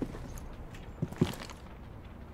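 A rifle clicks and rattles as it is raised.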